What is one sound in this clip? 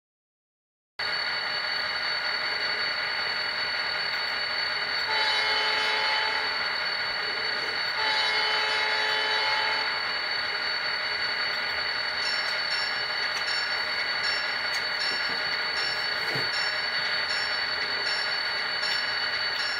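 A model locomotive hums and rumbles steadily at idle.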